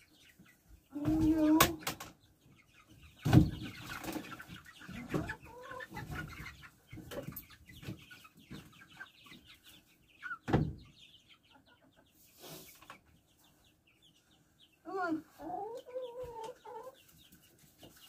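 Hens cluck and squawk nearby.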